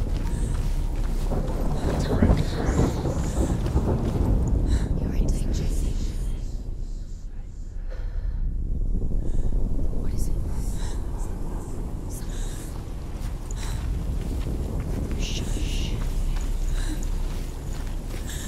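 Footsteps crunch on dirt and dry grass.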